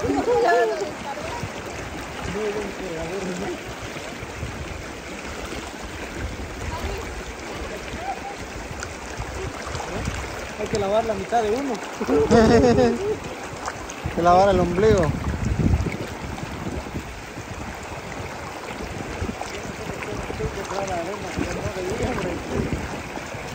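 A river rushes steadily over rocks close by.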